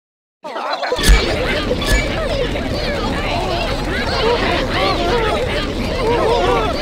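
Cartoon zombies groan and gurgle in a crowd.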